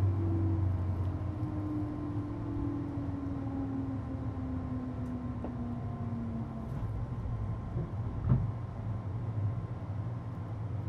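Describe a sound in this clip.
A stopped electric train hums low and steady.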